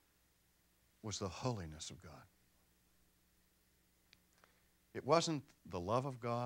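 A middle-aged man speaks with animation through a clip-on microphone, pausing between phrases.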